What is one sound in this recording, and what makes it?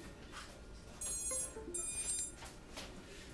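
A small electronic buzzer beeps in short high tones.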